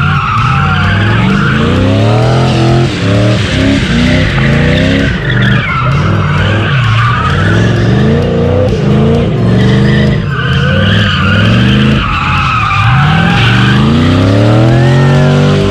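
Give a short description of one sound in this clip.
A car engine revs hard, rising and falling over and over.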